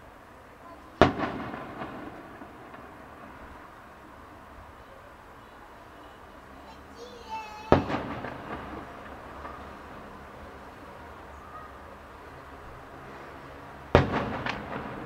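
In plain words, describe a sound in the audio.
Fireworks burst with loud booms that echo away.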